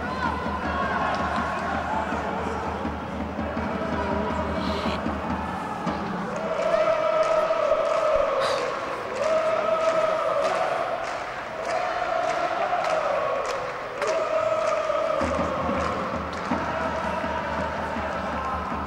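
Young men shout to each other across a large, echoing empty stadium.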